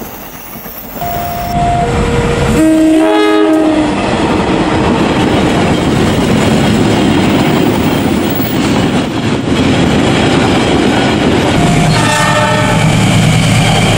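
A train horn blares in loud, pitched blasts.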